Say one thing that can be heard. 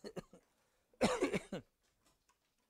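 An elderly man coughs.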